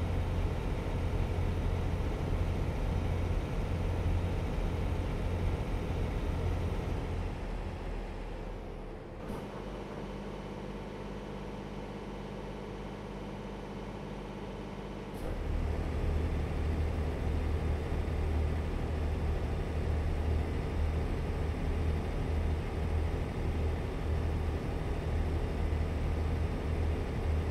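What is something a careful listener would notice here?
A truck engine rumbles steadily, dropping quieter for a few seconds.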